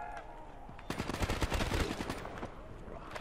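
A rifle fires a rapid burst.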